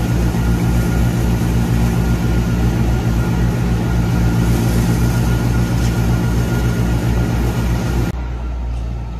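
A straw blower machine roars and whirs steadily.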